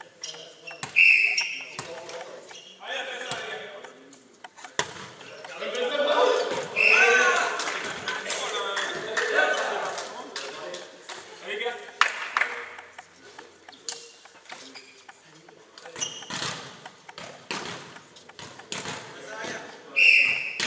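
Sneakers squeak sharply on the hall floor.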